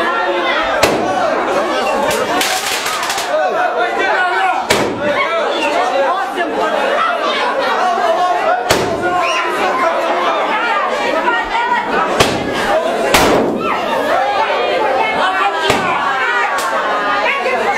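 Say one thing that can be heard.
Firecrackers pop and bang sharply now and then.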